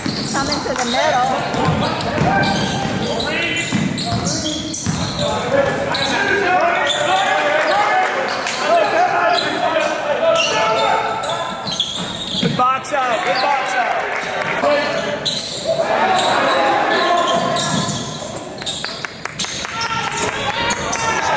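Spectators shout and call out in a large echoing hall.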